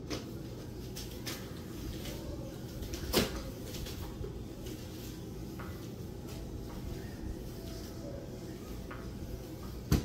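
A spin mop swishes across a tiled floor.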